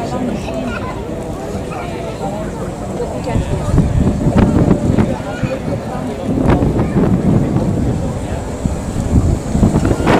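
A crowd chatters outdoors in the open air.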